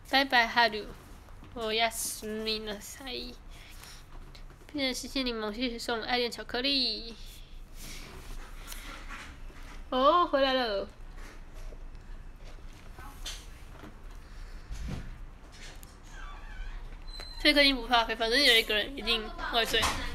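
A young woman talks casually and close to a phone microphone.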